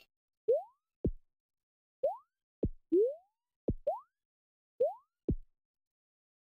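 Game landing sounds drop in short falling blips.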